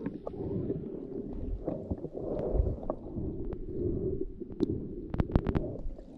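Water rushes and churns in a muffled, low roar underwater.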